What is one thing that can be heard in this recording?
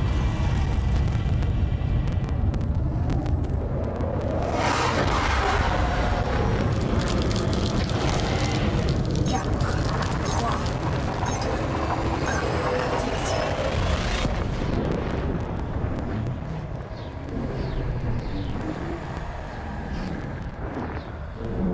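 A spacecraft engine rumbles with a deep, steady hum.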